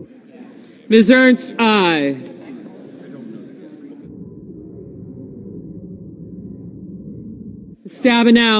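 People murmur quietly in a large hall.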